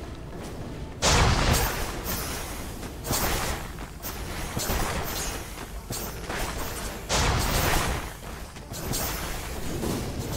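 Magic blasts burst and crackle in a loud fight.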